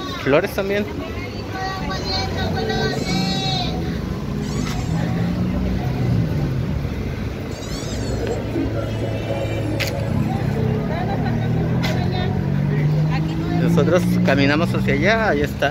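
A car engine hums as traffic passes on the street.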